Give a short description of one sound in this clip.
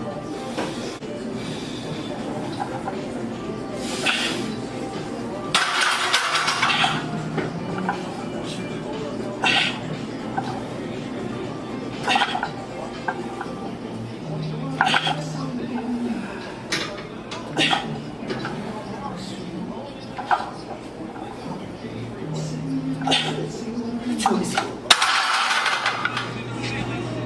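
Metal weight plates clink on a barbell.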